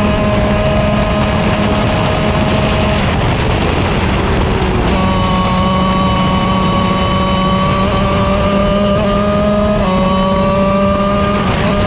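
A kart engine roars loudly up close, its pitch rising and falling with speed.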